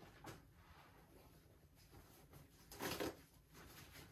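A paper towel rustles as gloved hands are wiped.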